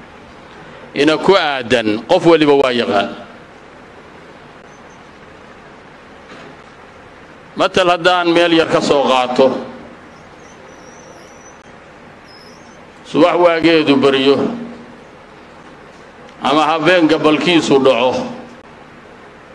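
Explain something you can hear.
A middle-aged man speaks calmly into a microphone in short phrases with pauses between them.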